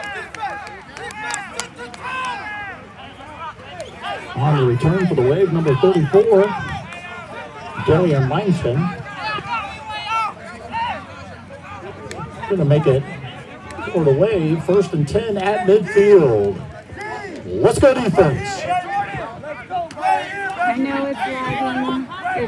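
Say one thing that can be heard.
A crowd of spectators cheers and shouts outdoors at a distance.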